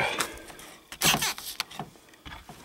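A wooden latch slides and knocks open.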